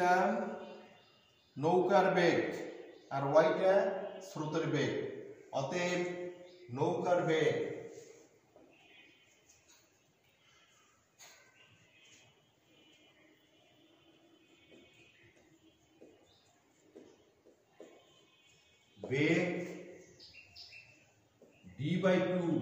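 A middle-aged man speaks calmly and clearly into a nearby microphone.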